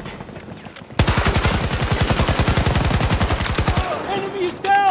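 A rifle fires in a rapid, loud burst of shots.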